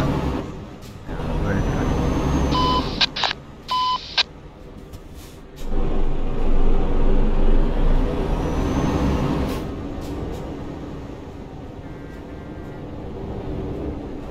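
Passing trucks roar by close alongside.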